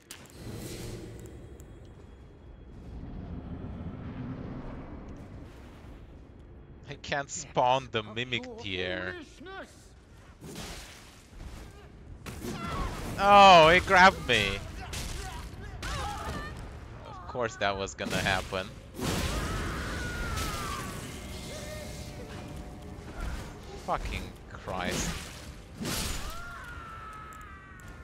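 Magic effects whoosh and roar.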